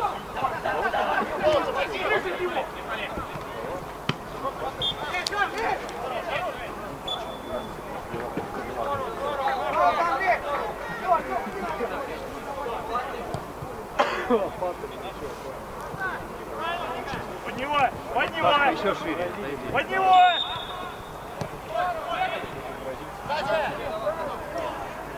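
Young women shout and call out across an open pitch.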